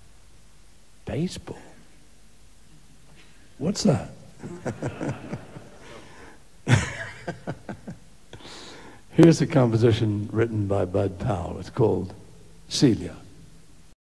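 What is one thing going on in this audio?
An elderly man speaks calmly, close to a microphone.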